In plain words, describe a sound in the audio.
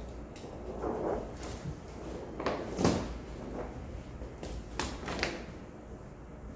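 A large sheet of flexible board rustles and flaps as it is laid down.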